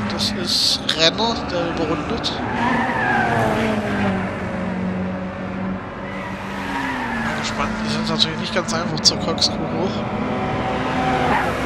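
A racing car engine roars, its pitch rising and falling as it shifts gears.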